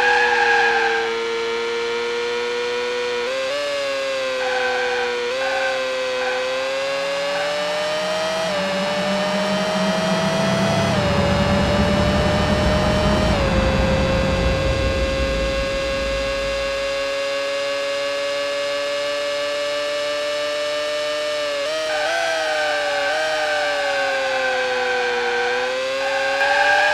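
A race car engine whines steadily, rising and falling in pitch as it speeds up and slows down.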